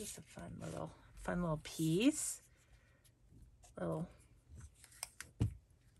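Paper rustles as hands handle it.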